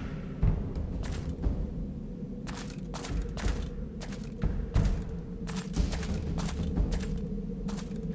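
Heavy armoured footsteps thud and clank on stone.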